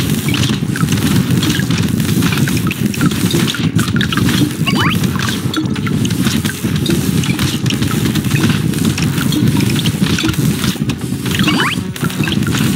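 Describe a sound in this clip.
Weapons fire rapidly in a video game.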